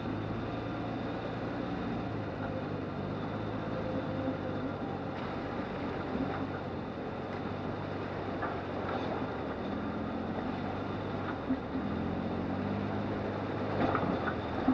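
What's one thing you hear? Water sloshes and splashes under tyres.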